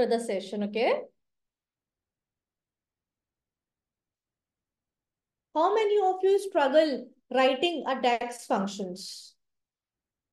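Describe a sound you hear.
A young woman speaks calmly through a microphone in an online call.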